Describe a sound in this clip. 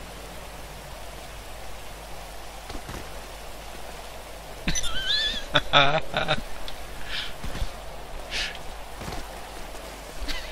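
Footsteps scuff on a dirt road.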